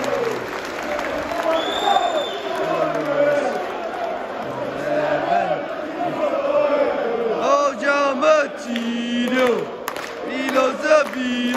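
Men nearby chant and shout with excitement.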